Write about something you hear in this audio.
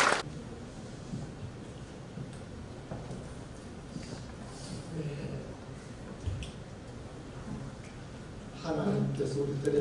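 Another elderly man speaks with animation through a microphone.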